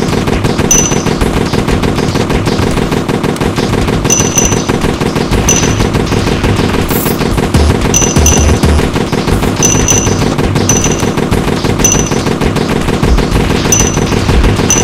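Small guns fire in rapid bursts.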